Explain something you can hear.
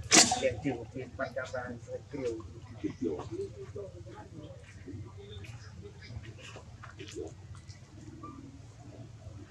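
A young monkey chews and munches on food up close.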